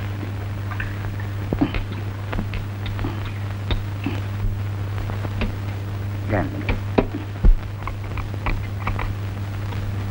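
Glasses clink against a table.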